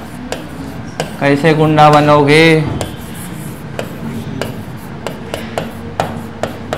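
A marker taps and scratches on a board.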